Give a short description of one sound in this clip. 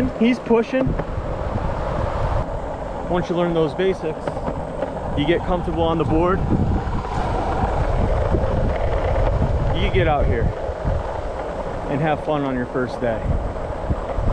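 Skateboard wheels rumble steadily over asphalt.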